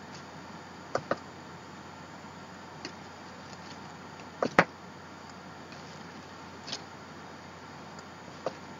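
Paper rustles and taps softly, close by.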